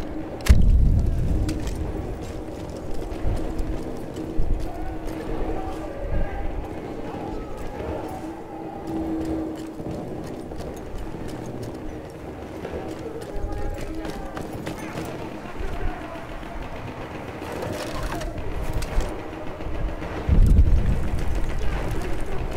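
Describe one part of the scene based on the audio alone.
Footsteps tread on stone floors and stairs.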